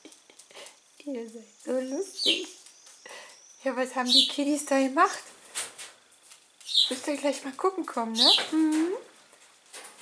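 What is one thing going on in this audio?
Pigeons coo softly close by.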